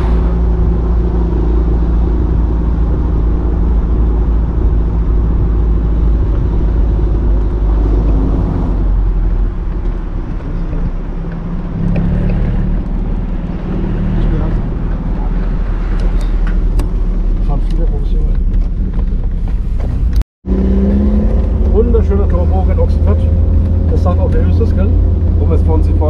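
A car engine rumbles steadily as the car drives.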